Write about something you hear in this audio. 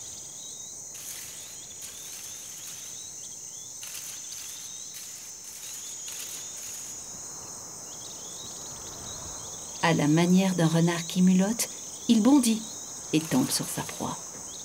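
Dry grass rustles as a wild cat pounces through it.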